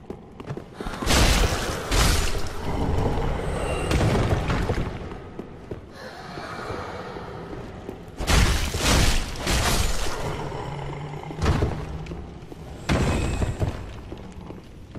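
Swords clash and slash in combat.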